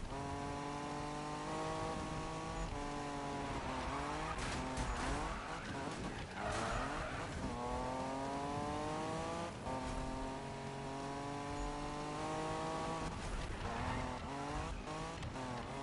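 A race car engine roars at high revs, shifting gears up and down.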